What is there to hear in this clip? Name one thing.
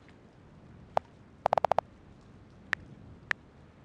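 Phone keyboard keys click in short bursts.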